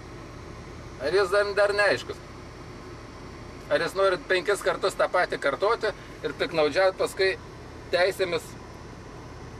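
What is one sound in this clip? A man speaks close by, just outside a car window.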